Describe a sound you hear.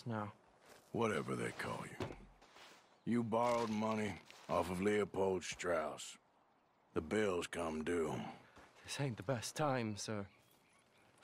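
A young man answers.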